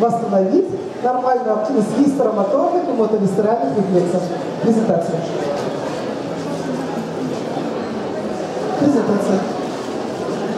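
A middle-aged woman speaks with animation through a microphone in a large, echoing hall.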